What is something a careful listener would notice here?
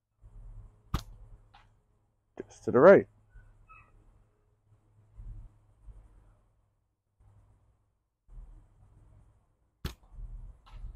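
A thrown object thuds sharply into a target.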